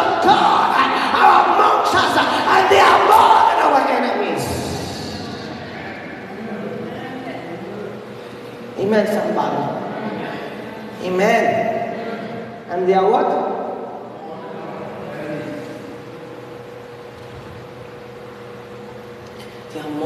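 A man speaks passionately into a microphone over loudspeakers in a large echoing hall.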